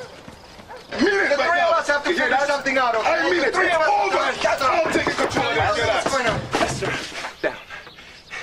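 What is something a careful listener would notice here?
A man groans loudly nearby.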